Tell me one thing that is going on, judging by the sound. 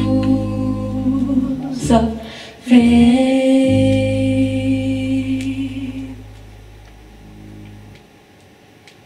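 An electric guitar plays sustained chords through amplifiers in a hall.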